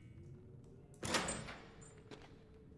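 A heavy metal chain rattles against an iron gate.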